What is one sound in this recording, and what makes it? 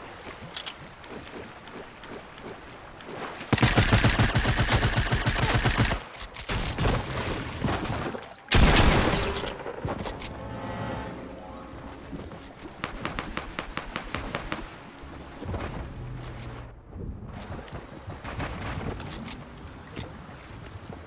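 Water splashes as a character swims.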